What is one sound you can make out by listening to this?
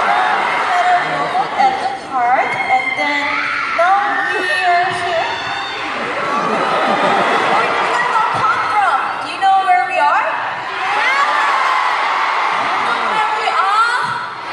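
Young women speak with animation through microphones in a large echoing hall.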